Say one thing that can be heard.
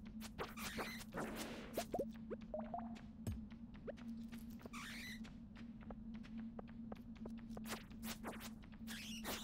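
Short cracking hits of a pickaxe on rock ring out repeatedly in a video game.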